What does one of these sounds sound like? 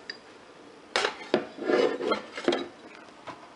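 A mug knocks against a hard surface as it is set down.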